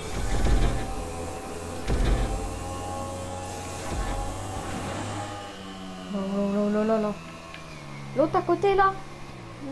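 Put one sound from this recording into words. A motorcycle engine roars and revs as the bike speeds along.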